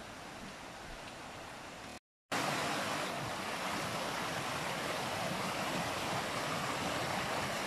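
A shallow stream babbles and splashes over rocks.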